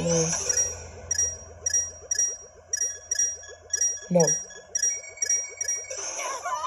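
Short bright coin chimes from a handheld game ring in quick succession.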